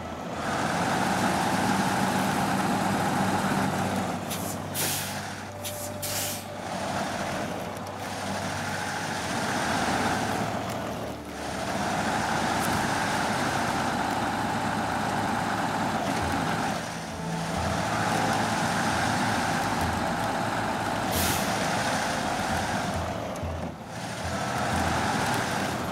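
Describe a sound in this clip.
A heavy truck engine roars and strains steadily.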